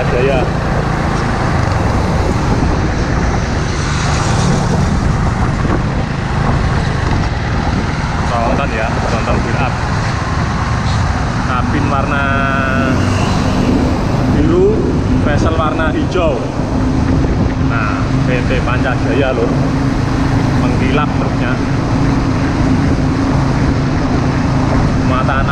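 A loaded truck's diesel engine rumbles close by.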